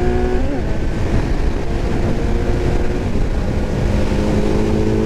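A motorcycle engine hums steadily and shifts pitch as it changes gear.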